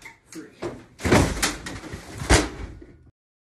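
A television crashes down onto the floor with a heavy thud.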